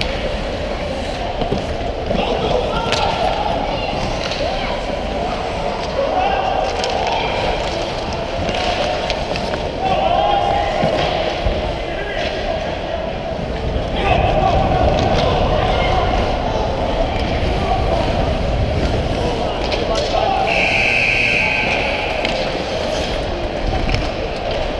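Ice skates scrape and hiss across the ice close by.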